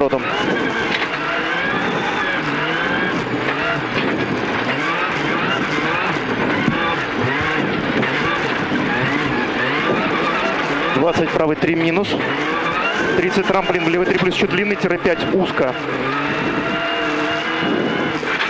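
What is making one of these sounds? A rally car engine roars and revs up and down hard.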